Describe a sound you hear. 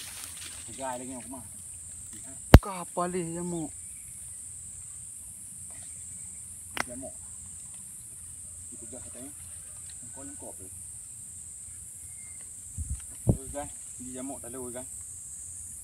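A man calls out outdoors.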